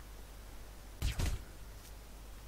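A silenced pistol fires a shot.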